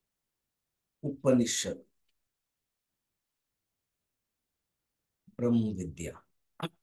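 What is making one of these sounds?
An elderly man speaks calmly in short bursts, heard through a microphone on an online call.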